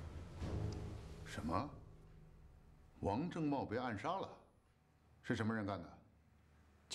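A middle-aged man speaks sternly and firmly, close by.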